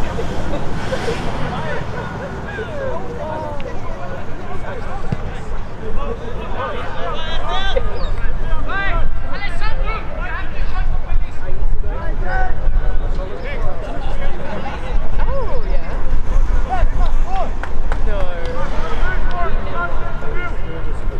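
Young men shout to one another across an open field.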